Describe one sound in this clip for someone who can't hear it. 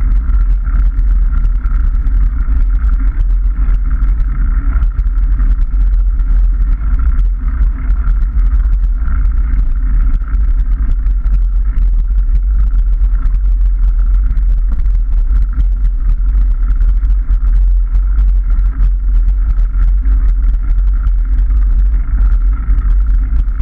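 Bicycle tyres crunch and rattle over a gravel path.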